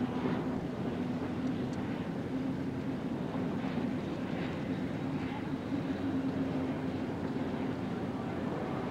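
Spray hisses and rushes off the water behind a racing boat.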